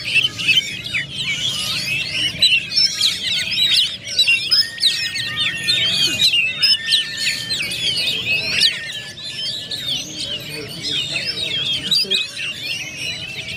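Caged songbirds sing rapid, varied chirping and whistling phrases outdoors.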